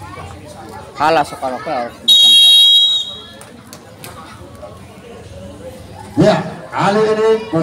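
Young women shout and cheer loudly nearby.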